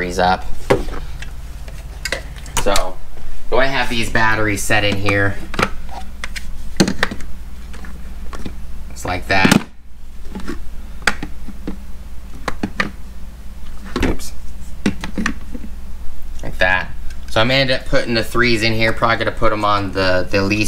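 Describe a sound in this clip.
Plastic battery packs clack and knock against each other.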